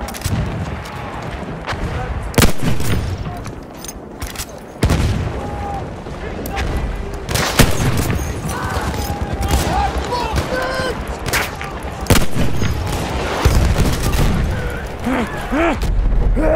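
Gunfire and explosions rumble in the distance.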